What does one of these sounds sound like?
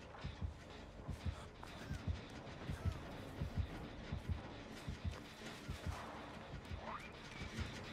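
Footsteps rustle through tall grass at a steady pace.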